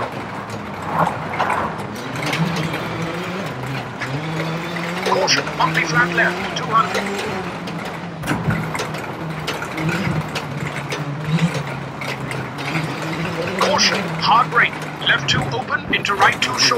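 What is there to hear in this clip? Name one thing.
A rally car engine drones steadily, shifting pitch as it changes gear.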